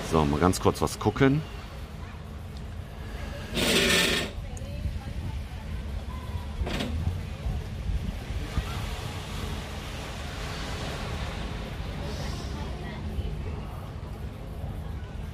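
Small waves wash gently onto a sandy shore in the distance.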